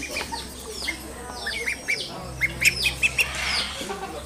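Ducklings peep in high chirps.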